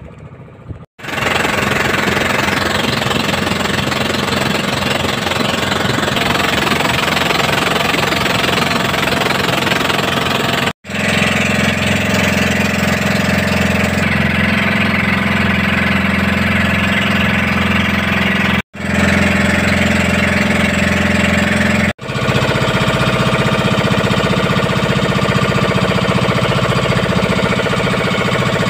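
The engine of an outrigger fishing boat drones steadily while under way.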